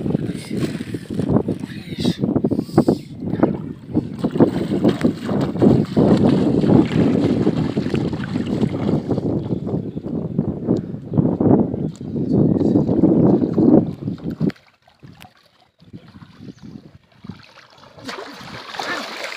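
Water splashes and sloshes around a person's legs as they wade through the shallows.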